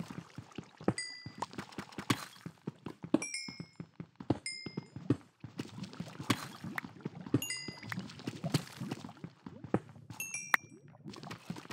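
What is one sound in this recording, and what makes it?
Short bright chimes ping several times.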